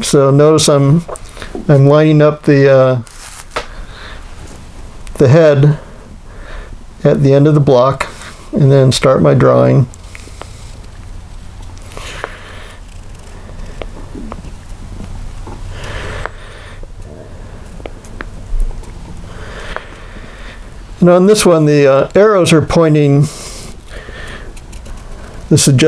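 A felt-tip marker squeaks softly as it traces on paper.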